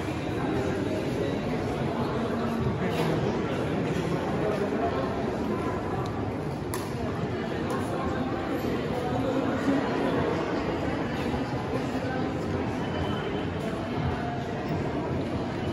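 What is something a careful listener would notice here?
Footsteps shuffle on stone stairs.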